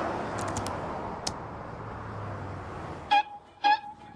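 Cars rush past on a highway.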